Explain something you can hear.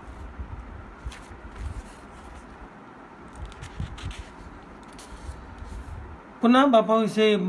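Paper pages rustle as a book is handled and leafed through.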